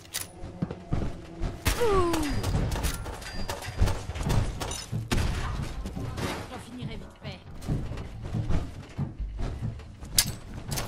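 Footsteps thud on hard floors.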